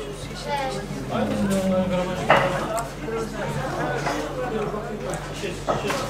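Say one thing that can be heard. A man hums with pleasure while chewing food.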